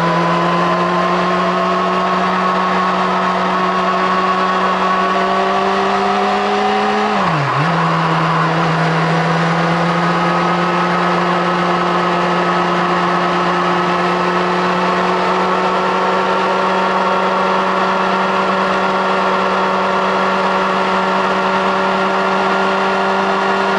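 A motorcycle engine roars loudly and steadily close by, briefly dropping in pitch at a gear change before climbing again.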